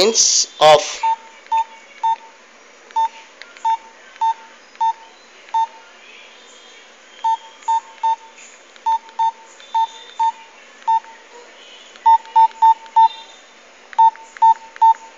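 A mobile phone beeps briefly with each key press.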